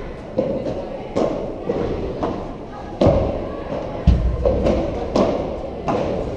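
A ball bounces off the court and glass walls.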